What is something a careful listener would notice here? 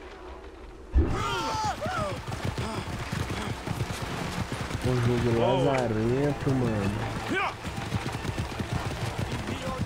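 Cart wheels rumble over stone.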